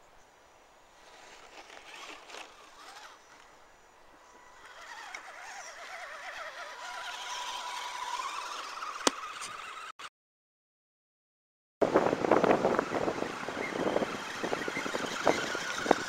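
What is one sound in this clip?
A small electric motor whines as a toy off-road truck crawls.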